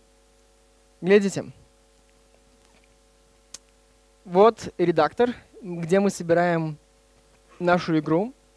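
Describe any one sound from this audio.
A man speaks into a microphone in short bursts.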